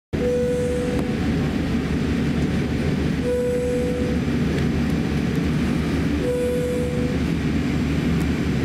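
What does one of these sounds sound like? A jet airliner's engines rumble steadily, heard from inside the cabin.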